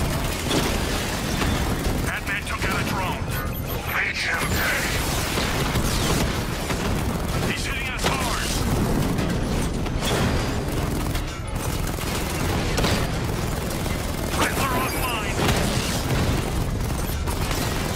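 Cannon fire and gunshots crack and boom repeatedly.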